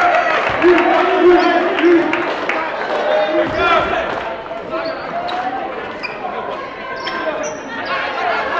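A crowd murmurs and shouts in a large echoing gym.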